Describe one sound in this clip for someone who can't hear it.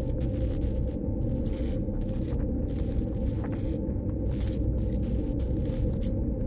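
Short game menu blips sound as items are selected.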